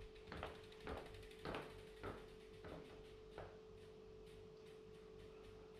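A bicycle rattles and clicks as it is wheeled.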